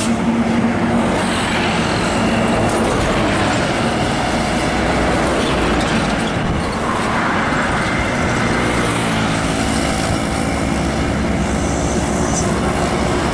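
Heavy truck engines rumble and drone loudly close by.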